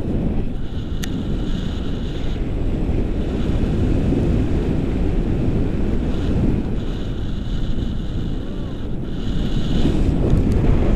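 Strong wind rushes and buffets against a microphone outdoors.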